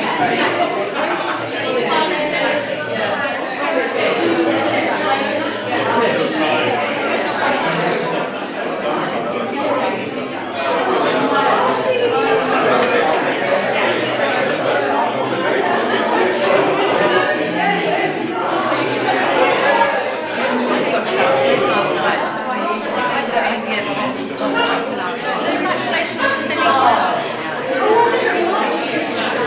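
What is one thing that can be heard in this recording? A crowd of men and women chatters nearby in an echoing room.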